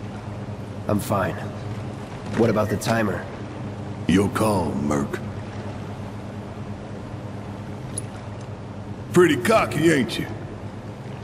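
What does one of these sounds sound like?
A man with a deep voice speaks calmly.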